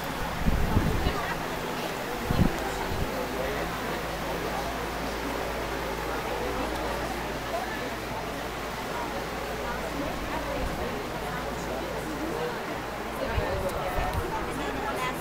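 A crowd of men and women chatters indoors.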